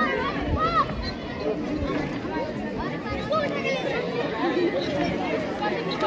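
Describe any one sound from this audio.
A crowd of onlookers chatters and calls out all around, outdoors.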